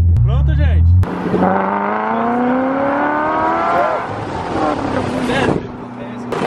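A car engine whines higher and higher as the car speeds up.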